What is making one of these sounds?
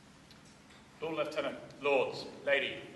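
A young man speaks formally into a microphone in an echoing hall.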